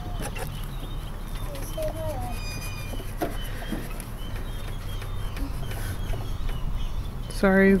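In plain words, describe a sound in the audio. A rubber stamper rubs and dabs on a hard surface.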